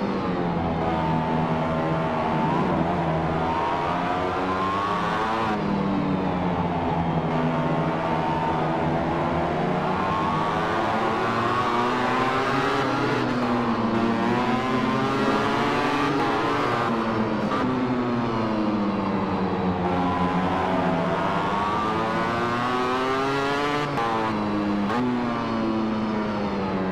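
A racing motorcycle engine screams loudly, rising and falling in pitch as it shifts gears.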